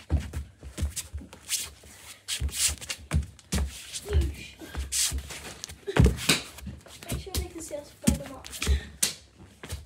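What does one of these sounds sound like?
Footsteps thud on carpeted stairs close by.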